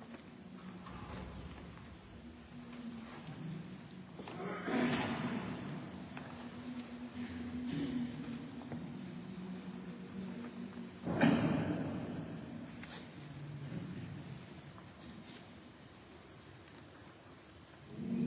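A choir of elderly men sings together in a large echoing hall.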